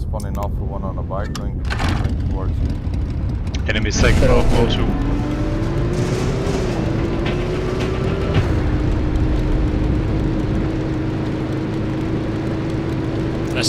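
A motorcycle engine drones steadily as it drives over rough ground.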